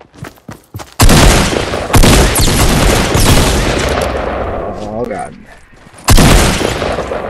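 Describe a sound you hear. Gunshots blast rapidly at close range.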